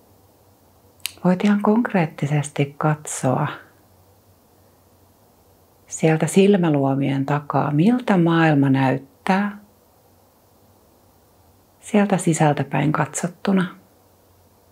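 A woman speaks calmly and softly through a close microphone, with long pauses.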